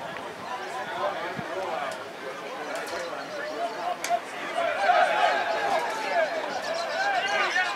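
A crowd of spectators shouts and cheers outdoors, getting louder as play goes on.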